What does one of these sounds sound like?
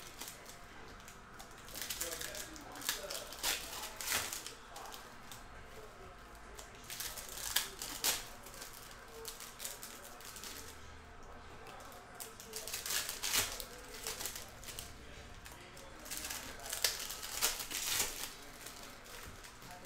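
Foil card wrappers crinkle and rustle in hands.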